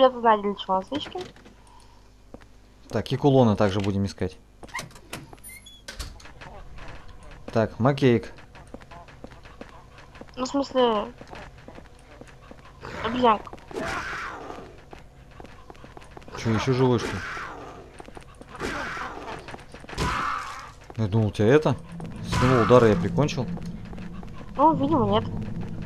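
A young man talks animatedly close to a microphone.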